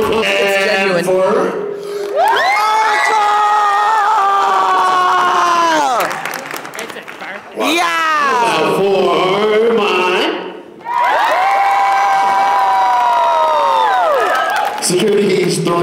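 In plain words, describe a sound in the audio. A man makes long, sliding vocal tones into a microphone, heard through loudspeakers in a large hall.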